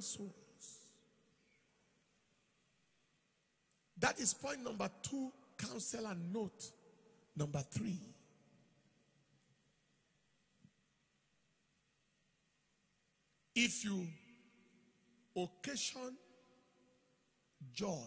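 A man speaks with animation through a microphone in a large echoing hall, pausing often.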